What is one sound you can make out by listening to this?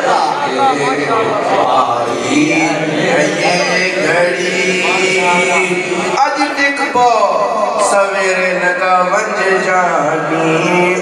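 A young man speaks with animation into a microphone, heard through loudspeakers in an echoing space.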